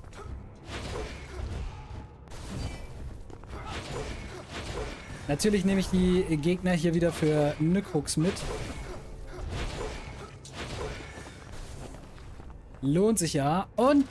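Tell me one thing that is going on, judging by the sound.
Sword slashes and hits ring out in quick bursts.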